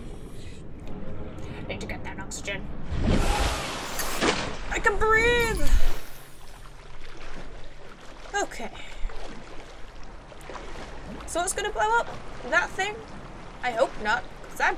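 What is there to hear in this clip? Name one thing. A young woman talks casually into a headset microphone.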